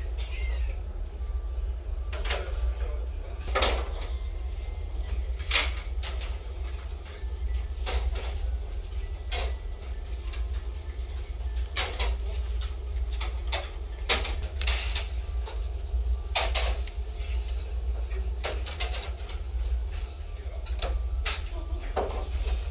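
Chopsticks tap and click against a plate.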